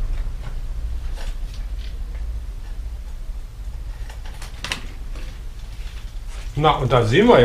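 Metal bicycle parts click and clink.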